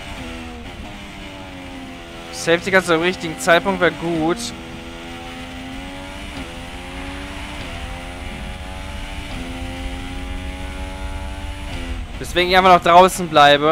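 A racing car engine whines steadily, rising in pitch and dropping with each gear change.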